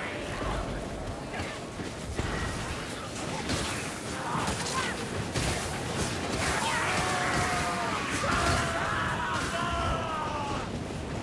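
Blades clash and slash against creatures in quick strikes.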